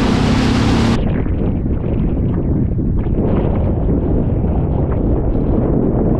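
Wind blows over open water.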